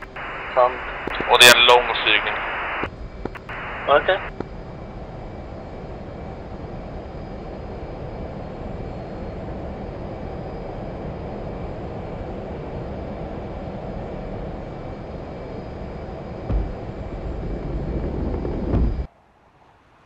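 A jet engine roars steadily and builds to a loud rumble.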